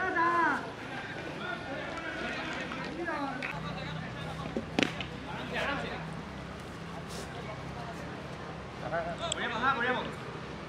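Young men shout to each other outdoors, some distance away.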